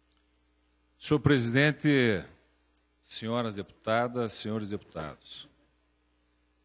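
A man speaks through a microphone, with pauses.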